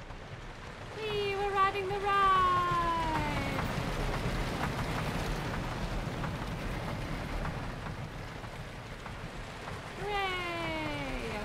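A wooden roller coaster train rumbles and clatters down its track.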